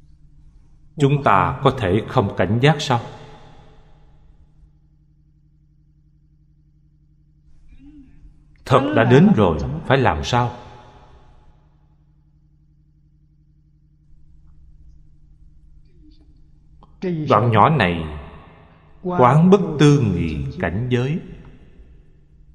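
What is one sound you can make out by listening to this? An elderly man speaks calmly and slowly into a microphone, pausing between phrases.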